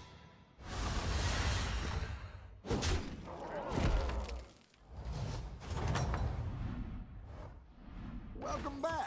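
Game effects chime and whoosh.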